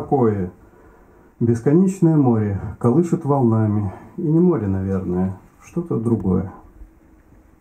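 A man reads aloud calmly into a microphone.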